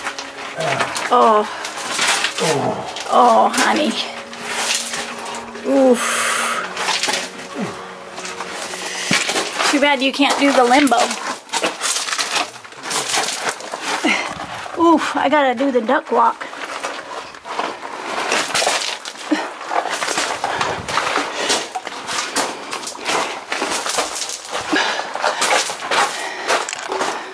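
Footsteps crunch on loose gravel and stones.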